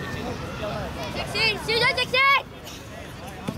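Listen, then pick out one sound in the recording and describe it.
Children shout across an open field outdoors.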